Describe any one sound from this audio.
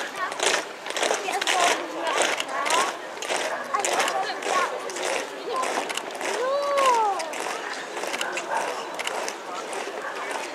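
Boots march in step on a paved street, outdoors.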